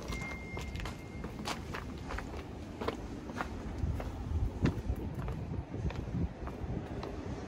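Footsteps crunch on gritty stone.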